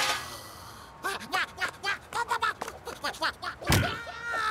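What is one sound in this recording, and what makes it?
A cartoon creature squeals and babbles shrilly.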